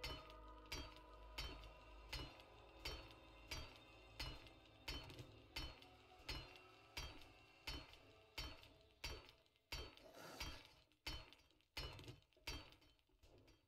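A heavy tool strikes metal again and again, each blow ringing.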